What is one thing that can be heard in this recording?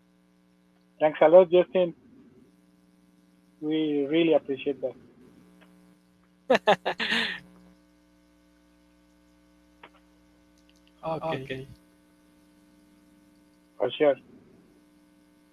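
Men laugh over an online call.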